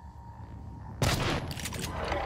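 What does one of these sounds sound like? Rapid gunfire bursts out loudly.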